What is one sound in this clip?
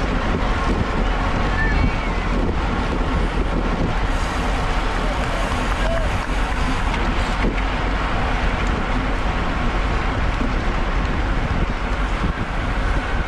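Bicycle tyres hum and rumble on a wet road.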